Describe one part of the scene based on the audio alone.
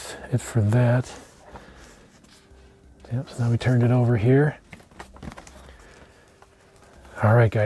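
Hands turn over a cardboard box, which rubs and scuffs softly.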